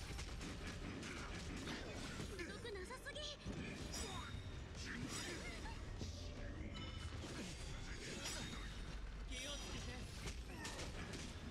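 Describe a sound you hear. Heavy blows strike with loud booming impacts.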